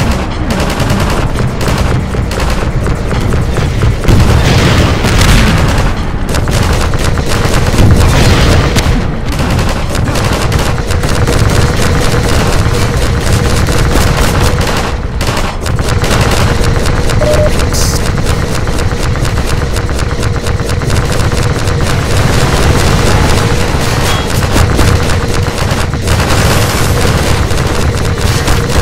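Rapid gunfire rattles on and on.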